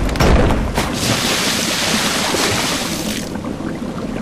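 A magical sparkling burst rings out.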